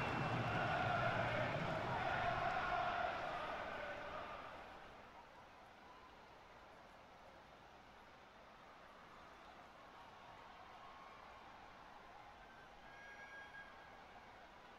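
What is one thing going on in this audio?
A large stadium crowd cheers loudly, then fades to a low murmur.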